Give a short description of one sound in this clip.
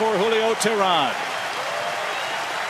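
A large stadium crowd claps and cheers.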